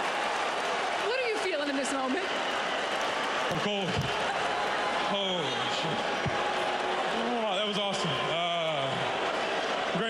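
A man speaks into a microphone over crowd noise.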